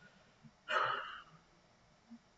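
A young man exclaims loudly and briefly into a close microphone.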